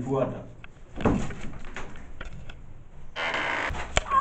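A wooden door creaks and bumps.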